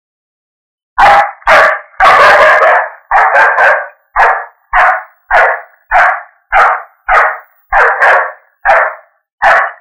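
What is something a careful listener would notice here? A man speaks loudly in short, even bursts.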